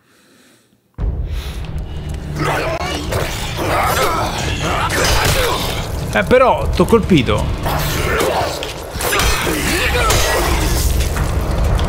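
A monster snarls and growls.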